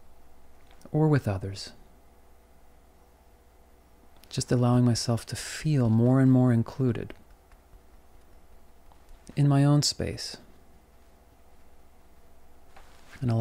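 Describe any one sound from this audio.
A man speaks calmly, close to a microphone.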